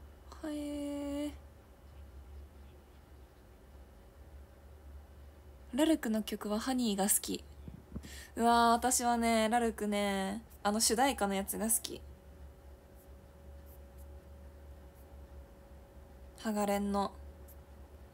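A young woman speaks animatedly and close into a microphone, in short bursts.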